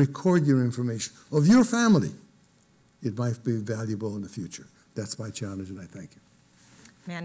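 An elderly man speaks calmly through a microphone.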